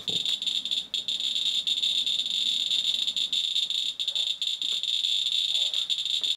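A radiation counter crackles with rapid, irregular clicks.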